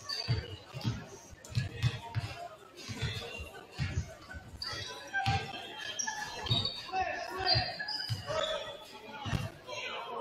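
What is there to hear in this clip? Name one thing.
A basketball bounces repeatedly on a hardwood floor in a large echoing gym.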